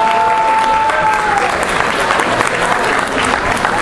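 Dancers' feet shuffle and thump on a stage floor.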